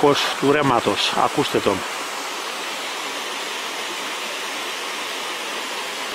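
Water splashes steadily over a small weir.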